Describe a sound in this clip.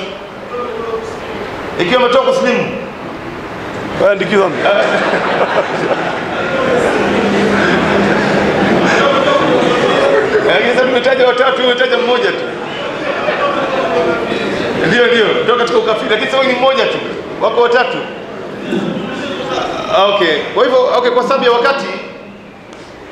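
A man speaks with animation into a microphone, heard through loudspeakers in an echoing room.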